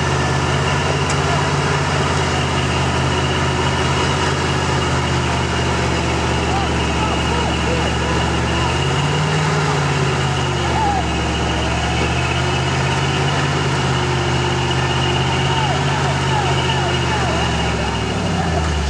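Tyres crunch over dirt and leaves.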